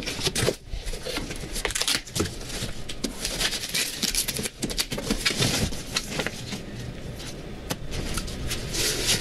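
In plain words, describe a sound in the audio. Fabric rustles softly.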